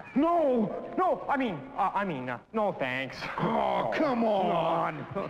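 A man talks animatedly nearby.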